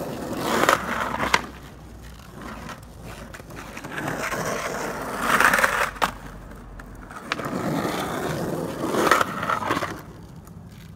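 Skateboard wheels roll and rumble over rough pavement.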